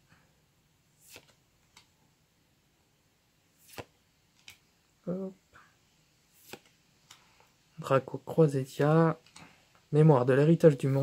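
Trading cards flick and slap softly as they are sorted by hand.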